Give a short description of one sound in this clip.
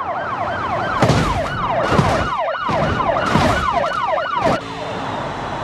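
A car crashes with loud metal impacts.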